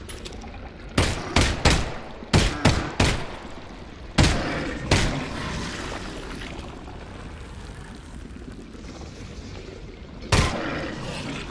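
A pistol fires a series of loud sharp shots.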